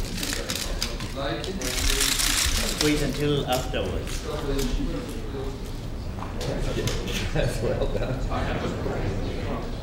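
An older man talks nearby.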